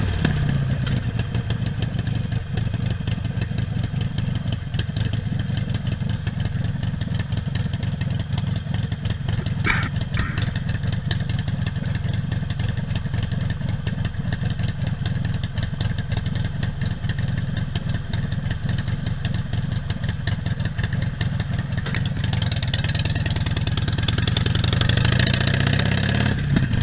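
A Harley-Davidson Sportster V-twin motorcycle cruises along a street.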